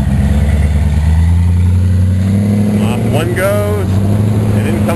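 An engine revs up and pulls away.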